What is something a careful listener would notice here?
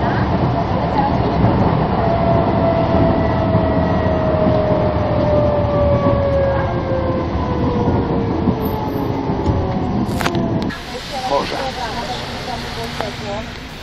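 A bus engine rumbles loudly from inside as the bus drives along.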